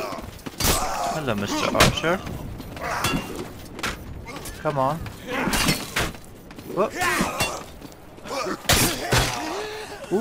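Heavy metal weapons strike and clash in sharp, scattered blows.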